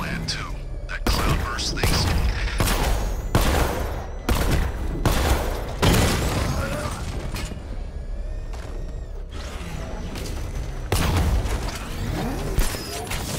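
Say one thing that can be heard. Heavy guns fire in rapid bursts with loud blasts.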